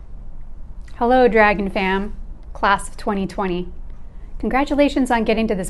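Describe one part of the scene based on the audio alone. A middle-aged woman reads out calmly, close to a microphone.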